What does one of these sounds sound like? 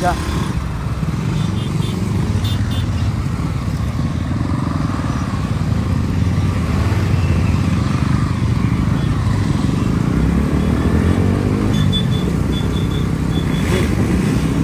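A motorcycle engine roars steadily while riding at speed.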